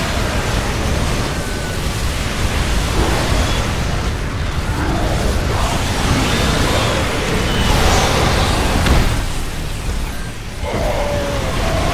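Game battle effects crackle and boom with energy blasts.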